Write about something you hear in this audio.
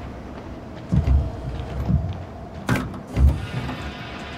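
A car bonnet is lifted open with a clunk.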